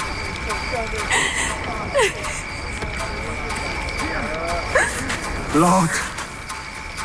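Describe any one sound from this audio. A young woman sobs and gasps close by.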